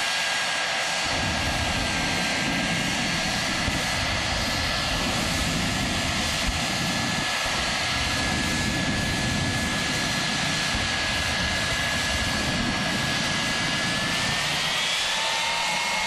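Jet afterburners roar in loud bursts.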